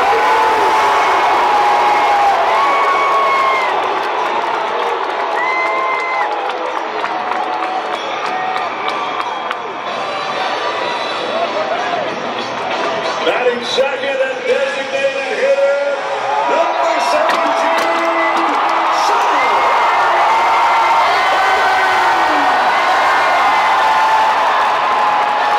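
A large stadium crowd cheers and roars loudly.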